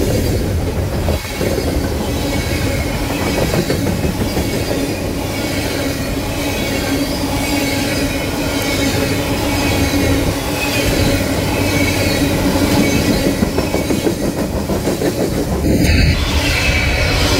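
Train wheels rumble and clatter steadily over the rails close by.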